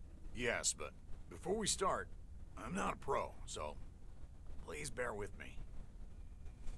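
An older man answers hesitantly, close by.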